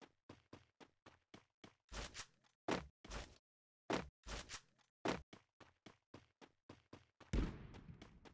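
Footsteps patter quickly over ground.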